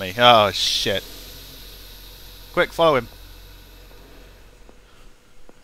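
A steam locomotive hisses steam.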